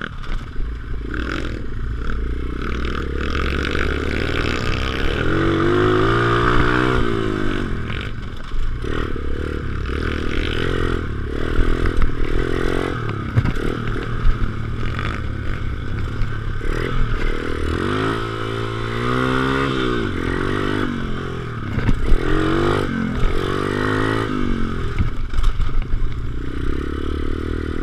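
A dirt bike engine revs up and down close by as it rides.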